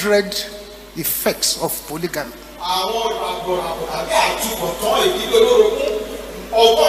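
A man preaches with fervour into a microphone.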